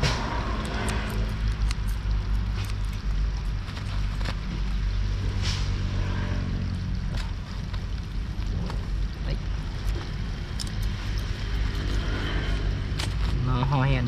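Scissors snip with sharp little clicks.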